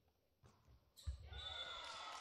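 A volleyball is struck hard with a sharp smack.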